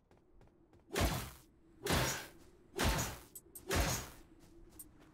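Heavy blows land in a fight.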